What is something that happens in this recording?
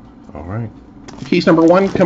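Hands handle a cardboard box with soft scraping and thumps.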